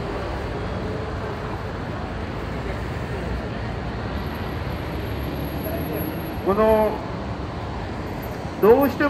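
Traffic and a crowd of passers-by hum steadily outdoors.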